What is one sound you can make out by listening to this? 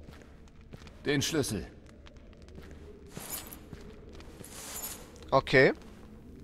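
A second man answers in a rough, gruff voice.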